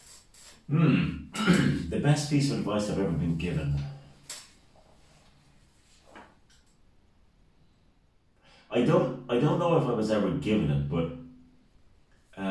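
A middle-aged man speaks calmly and close to a microphone.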